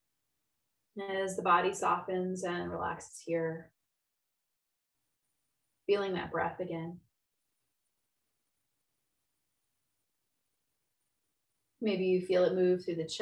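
A woman speaks calmly and slowly, close to a microphone, with long pauses.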